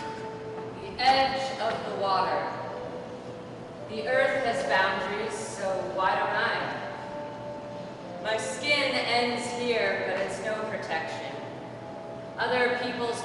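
A young man sings loudly in an echoing hall.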